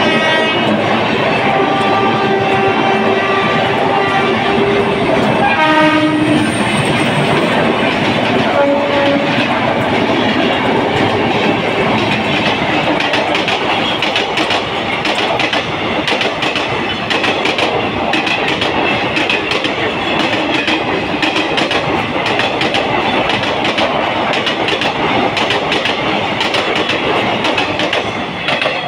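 A passenger train rumbles past close by, its wheels clattering over the rail joints.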